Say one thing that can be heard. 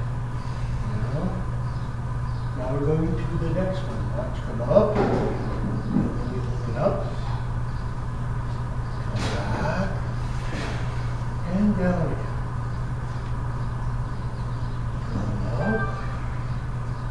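A woman speaks calmly, giving instructions.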